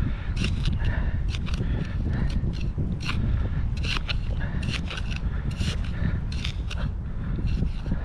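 A small trowel scrapes and digs into loose sand.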